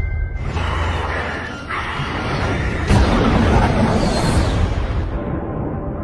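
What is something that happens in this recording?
A jet engine roars loudly as a plane streaks past.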